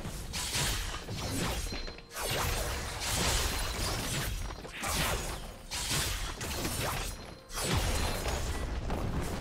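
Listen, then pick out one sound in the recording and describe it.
Spell effects crackle and whoosh in a game fight.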